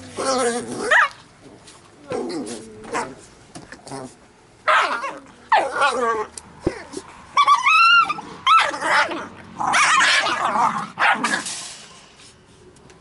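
Labrador retriever puppies growl and yip while play-fighting.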